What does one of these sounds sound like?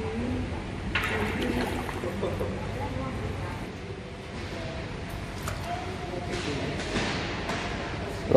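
Water splashes and laps as swimmers push off and kick.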